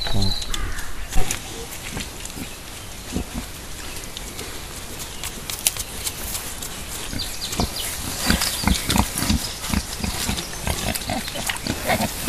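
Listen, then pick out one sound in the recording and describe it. Wild boars root and snuffle in the mud close by.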